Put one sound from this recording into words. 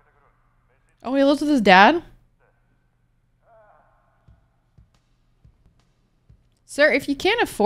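A young woman speaks expressively, close to a microphone.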